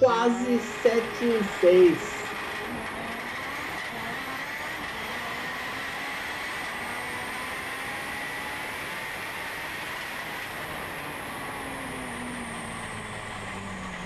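Wind rushes steadily past a moving car.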